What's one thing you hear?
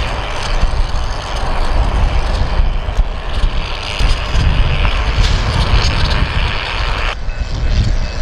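Diesel locomotive engines rumble steadily nearby.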